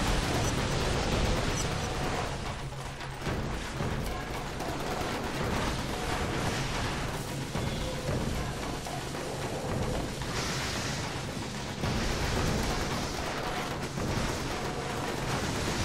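Gunfire and explosions crackle in a video game.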